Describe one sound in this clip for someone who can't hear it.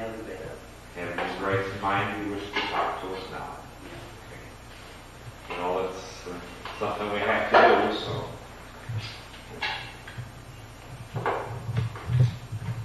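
A middle-aged man talks calmly, heard through an old, muffled recording.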